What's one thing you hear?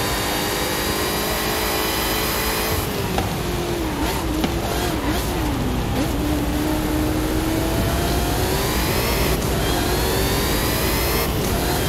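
A racing car engine roars at high speed, its pitch rising and dropping as it shifts gears.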